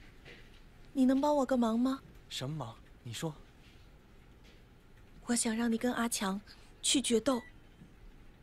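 A young woman speaks with a firm, earnest tone, close by.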